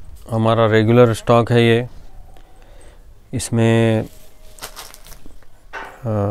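A man speaks close by with animation, in short bursts.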